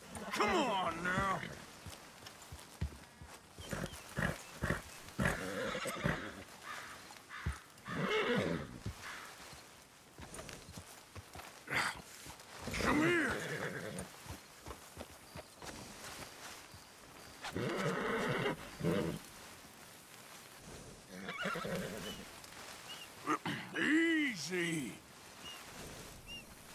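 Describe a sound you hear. Horse hooves thud on soft ground.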